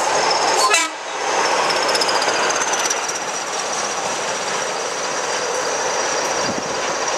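Freight wagons clatter past on the rails.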